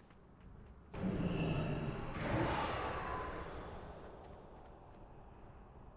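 A magical whooshing burst sounds and then fades away.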